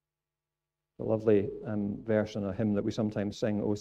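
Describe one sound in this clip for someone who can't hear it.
A middle-aged man speaks with animation into a microphone in an echoing hall.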